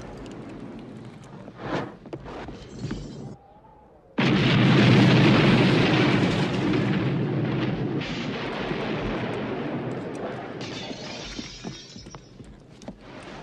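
A flamethrower hisses as it sprays fire.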